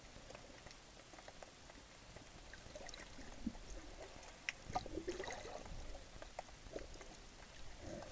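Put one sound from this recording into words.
Muffled underwater crackling and faint clicks fill the water.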